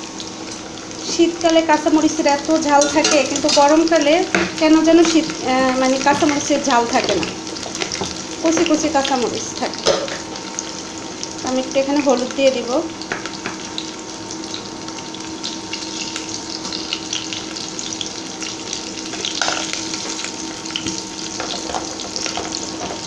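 Food sizzles gently in a pot.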